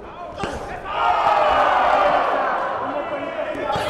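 A crowd cheers loudly in a large echoing arena.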